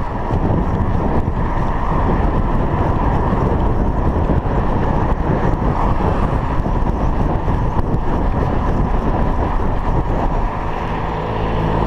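Wind rushes loudly past a cyclist riding along a road outdoors.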